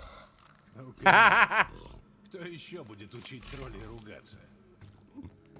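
A deep male voice speaks calmly and gruffly.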